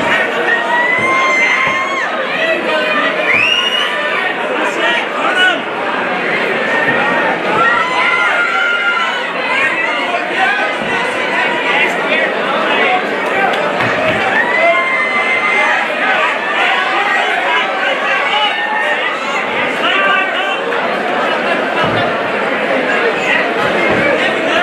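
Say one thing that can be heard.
A crowd of men and women shout and cheer loudly throughout.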